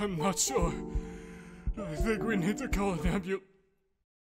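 A man speaks anxiously, his voice shaking.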